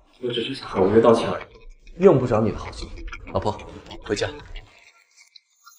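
A young man speaks sharply and coldly, close by.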